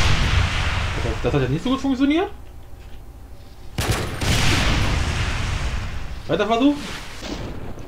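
A young man talks briefly through a headset microphone.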